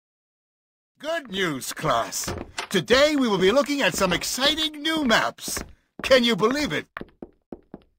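A man speaks with animation to a room.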